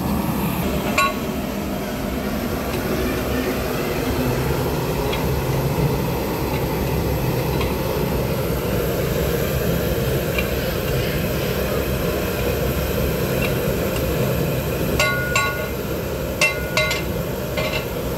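A metal ladle scrapes and knocks against a metal pot.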